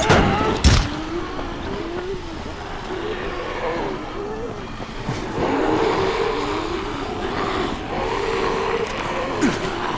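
Creatures groan and snarl nearby.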